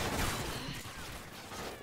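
Footsteps rustle quickly through leaves and undergrowth.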